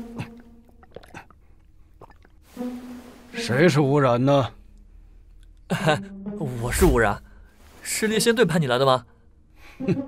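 A young man speaks with surprise.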